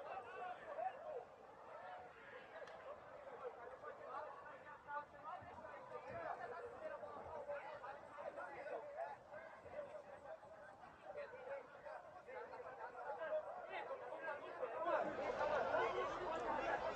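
Young people shout and call out across an open outdoor field.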